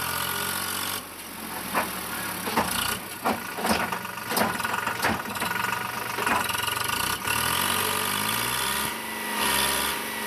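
Earth and gravel slide and clatter out of a tipping trailer.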